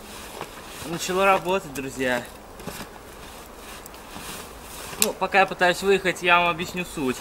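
A young man speaks loudly nearby outdoors.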